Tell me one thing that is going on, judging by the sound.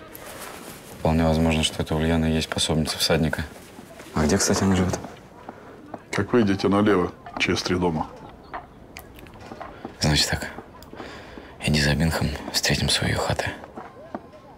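A young man speaks calmly and quietly close by.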